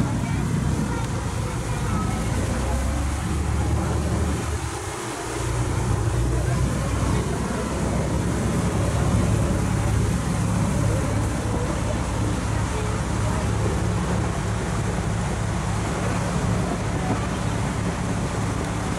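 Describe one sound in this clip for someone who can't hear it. Water rushes and splashes close by, steadily.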